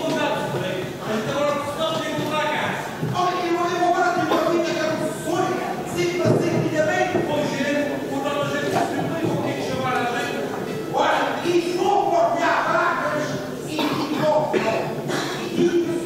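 A group of men sing together, heard through microphones.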